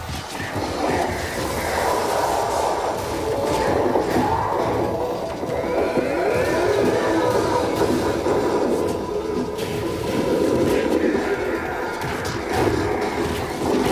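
Heavy blows thud in a brawl.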